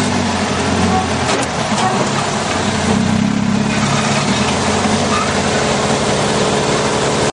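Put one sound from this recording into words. A dune buggy engine roars steadily close by.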